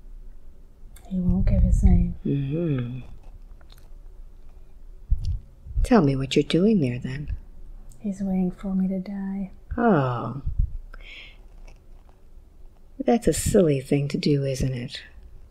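A woman speaks softly and slowly into a close microphone, with long pauses.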